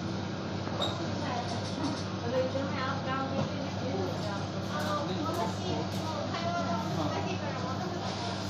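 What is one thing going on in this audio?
A refrigerator hums steadily.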